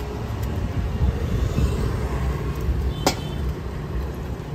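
A motorcycle engine hums as it passes close by.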